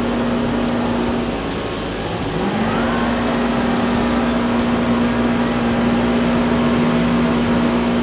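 Cars crash into each other with loud metal crunches.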